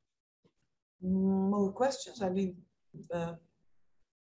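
A woman speaks with animation over an online call.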